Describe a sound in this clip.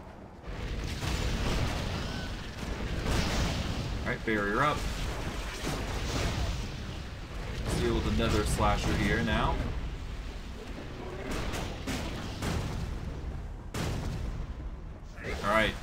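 Magic spells crackle and burst in quick blasts.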